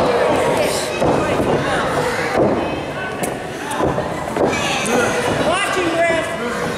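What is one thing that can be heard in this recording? A crowd of people chatters and shouts in a large echoing hall.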